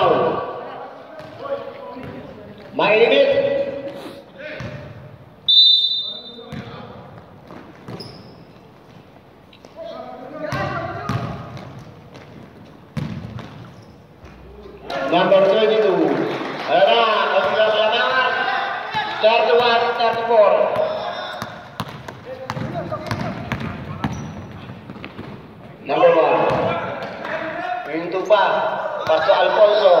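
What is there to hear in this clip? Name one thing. Men shout to each other across a large echoing gym.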